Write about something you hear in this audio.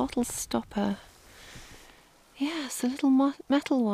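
A gloved hand rustles through dry twigs and soil.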